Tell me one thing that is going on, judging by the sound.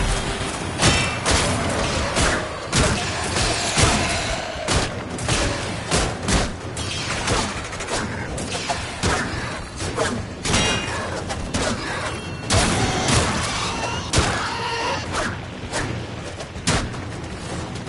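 A blade swooshes and strikes with sharp metallic hits.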